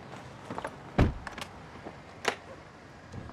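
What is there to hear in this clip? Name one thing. A car door handle clicks sharply.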